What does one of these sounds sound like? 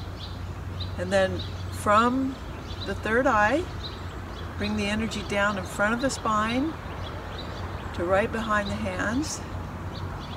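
An elderly woman speaks calmly and clearly, close by, outdoors.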